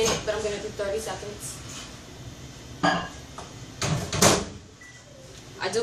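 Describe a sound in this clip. A microwave door opens and shuts with a clunk.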